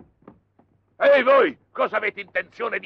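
A man with a deep voice talks loudly and excitedly, close by.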